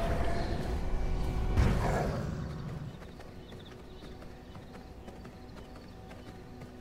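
Footsteps tread softly on a forest path.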